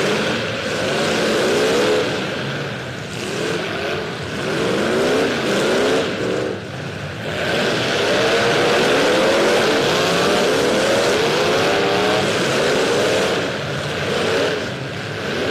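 Car engines roar and rev in an echoing arena.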